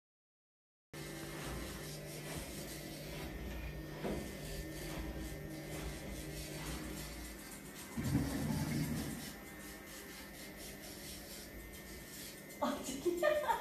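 A nail grinder buzzes steadily.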